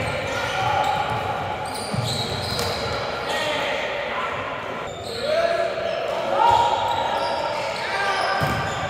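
Men call out to each other in a large echoing hall.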